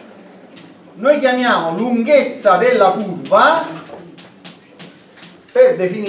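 A man lectures calmly nearby.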